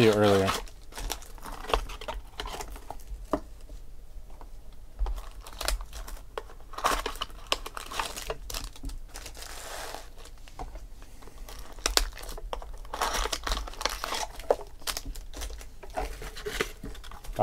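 Foil wrappers crinkle and tear as they are opened.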